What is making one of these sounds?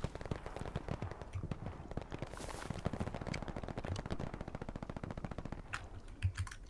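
Footsteps rustle quickly through dense undergrowth.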